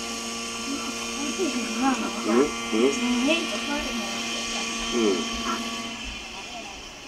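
A model helicopter engine whines steadily at high pitch.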